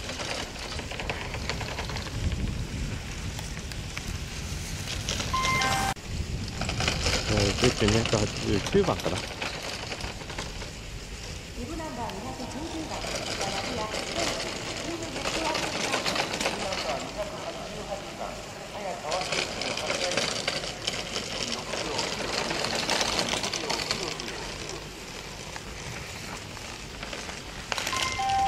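Skis scrape and hiss across hard snow in quick turns.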